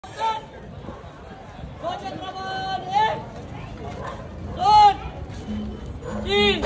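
A crowd of men shouts and cheers loudly outdoors.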